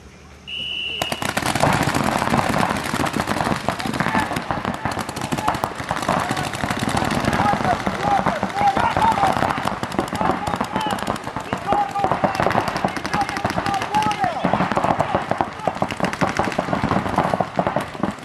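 Paintball guns fire in rapid bursts of sharp pops.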